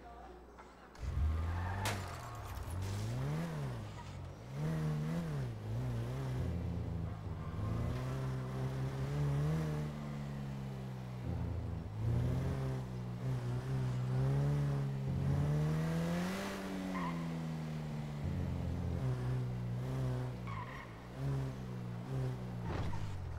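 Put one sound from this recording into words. A sports car engine starts, then revs and roars as the car speeds up and shifts gears.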